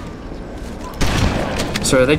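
A shotgun fires with a loud, sudden blast.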